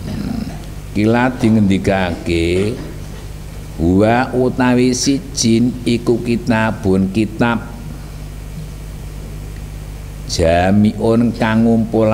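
A group of young men recite aloud together.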